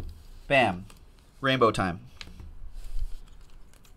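Trading cards rustle and click as hands shuffle them.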